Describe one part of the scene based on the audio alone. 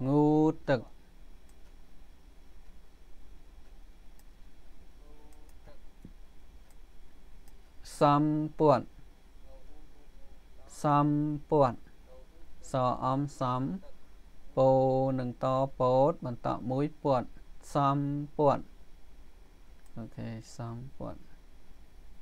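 A man speaks slowly and clearly through a microphone, pausing between words.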